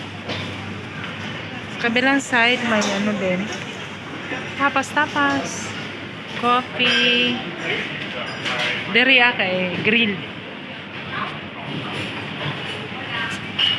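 People chatter in a low murmur in the background.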